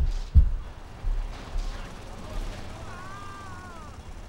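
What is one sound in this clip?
A car scrapes and bumps against a curb.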